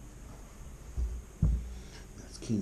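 Bumps knock against a metal table.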